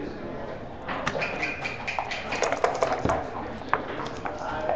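Dice rattle and roll across a board.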